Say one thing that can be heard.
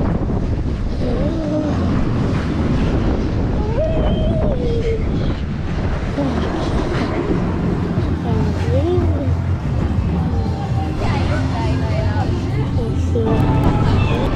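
A young boy talks excitedly close to a microphone.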